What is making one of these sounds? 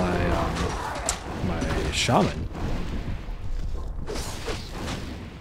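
Swords clash in a game battle.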